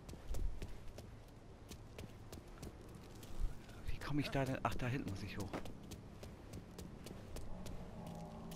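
Footsteps walk on a hard floor.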